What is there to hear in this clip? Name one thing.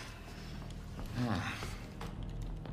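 A man groans in pain.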